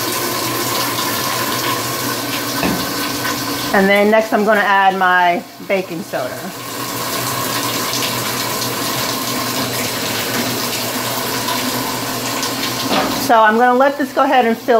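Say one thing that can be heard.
Water runs steadily into a washing machine.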